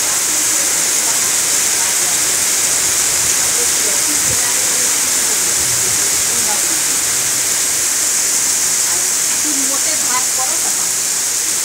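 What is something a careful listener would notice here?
Heavy rain pours steadily onto floodwater outdoors.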